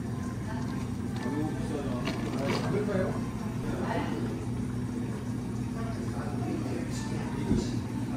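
Liquid pours over ice.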